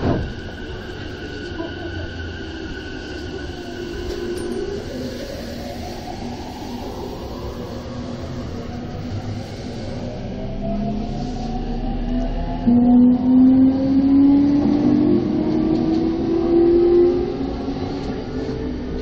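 A passing train rumbles and clatters close by.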